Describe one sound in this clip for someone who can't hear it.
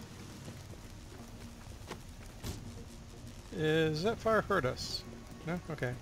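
Flames crackle and roar.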